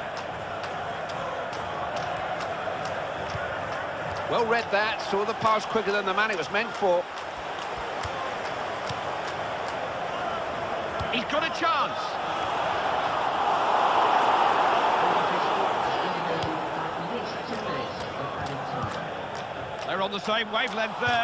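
A large crowd roars steadily in a stadium, swelling and then easing off.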